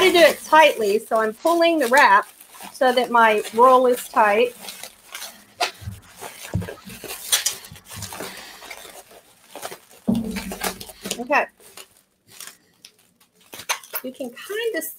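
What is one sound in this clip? Plastic bubble wrap crinkles and rustles.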